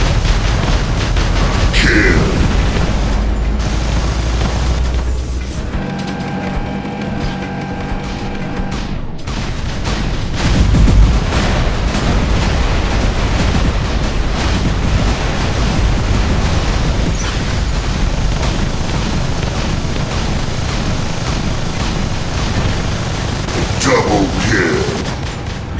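Rapid gunfire rattles and booms in bursts.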